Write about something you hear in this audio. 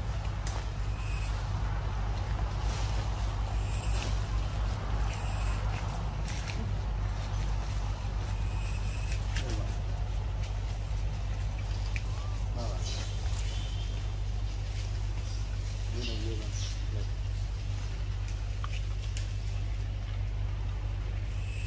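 Wind blows through leafy trees outdoors.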